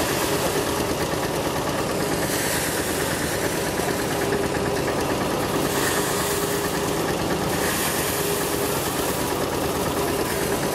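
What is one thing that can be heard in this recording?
Straw rustles as it is fed into a threshing machine.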